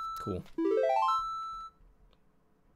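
A rising electronic game jingle plays in quick steps.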